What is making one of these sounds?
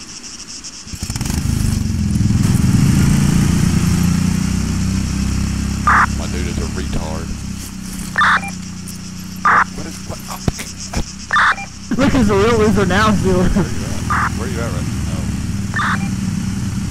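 A go-kart engine rumbles nearby.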